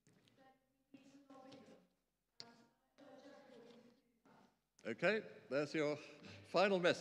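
An elderly man speaks cheerfully into a microphone in an echoing hall.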